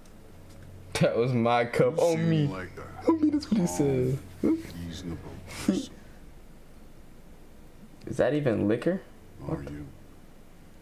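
A young man talks and laughs with animation close to a microphone.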